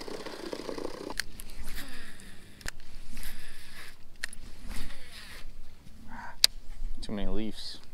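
A fishing reel clicks as the line is wound in.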